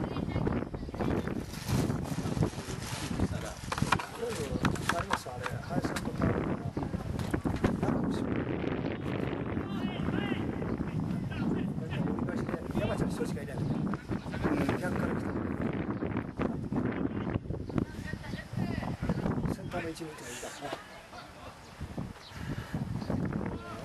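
Wind buffets loudly against the microphone outdoors.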